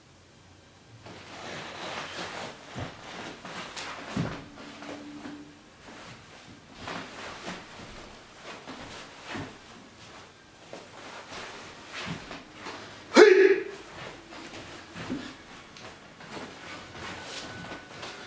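Stiff fabric swishes and snaps with quick movements.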